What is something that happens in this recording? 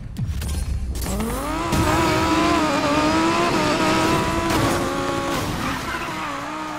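Race car engines roar and rev up as the cars pull away.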